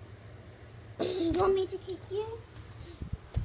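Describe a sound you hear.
A young girl speaks close to a phone's microphone.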